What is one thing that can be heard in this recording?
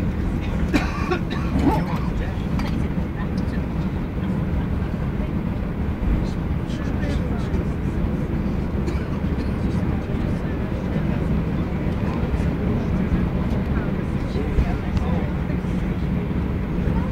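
Aircraft wheels rumble over the taxiway.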